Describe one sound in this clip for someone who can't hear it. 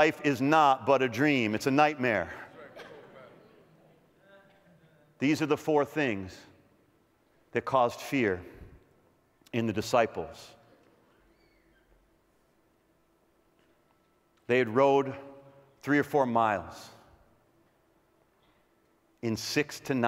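A man speaks with animation through a microphone in a large echoing hall, with pauses between phrases.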